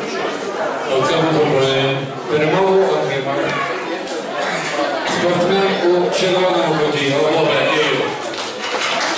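A man calls out loudly in an echoing hall.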